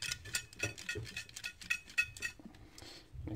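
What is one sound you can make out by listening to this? Small metal parts click and rattle in hands.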